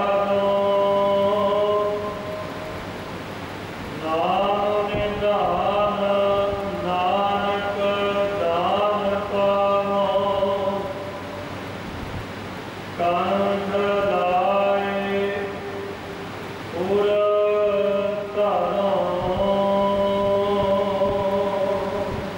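A man sings slowly in long held notes through a microphone.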